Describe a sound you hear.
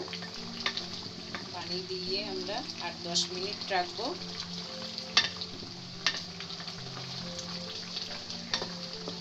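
A curry simmers and bubbles in a pot.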